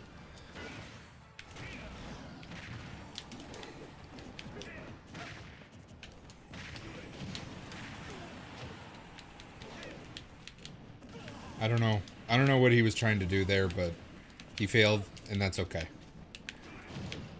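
Video game fighters clash with quick hits and bursts.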